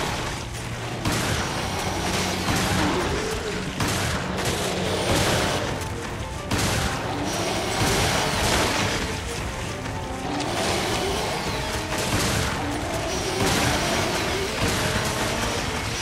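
Shotgun blasts boom one after another.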